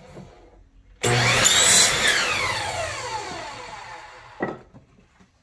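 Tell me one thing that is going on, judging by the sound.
A power saw's blade whirs and winds down.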